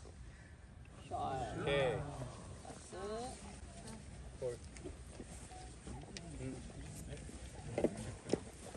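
Women talk and exclaim nearby after the shot.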